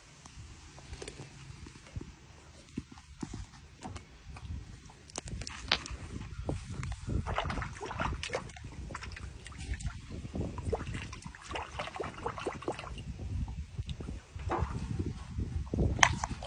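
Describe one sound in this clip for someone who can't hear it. A big cat laps and splashes water.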